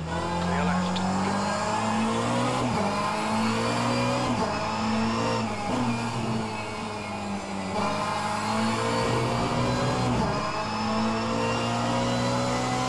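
A racing car engine roars loudly, revving up and dropping briefly with each gear change.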